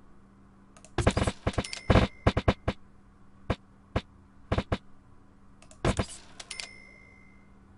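Short, sharp clicks and snaps sound as a window is placed.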